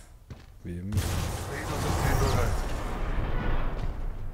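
An energy weapon charges up with a bright electric whine.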